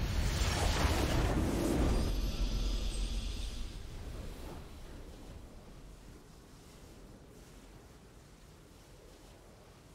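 A triumphant game fanfare plays and slowly fades.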